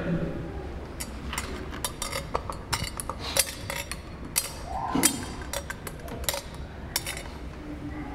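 Metal censer chains clink in quick rattles.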